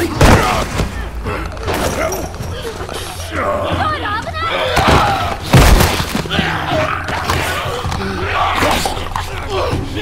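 A man grunts and strains while struggling.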